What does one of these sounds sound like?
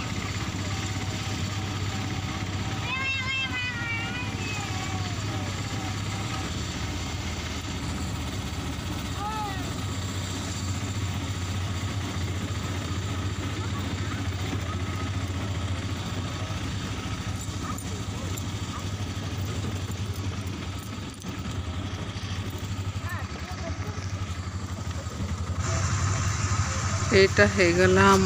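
Tyres rumble over a rough dirt road.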